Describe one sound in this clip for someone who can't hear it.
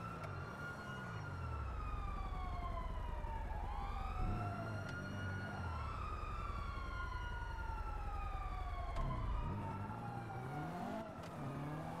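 Car tyres screech while sliding around a turn.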